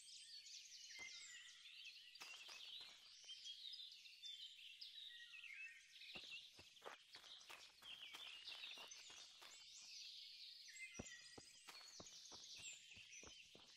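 Footsteps tread through grass and over a dirt path.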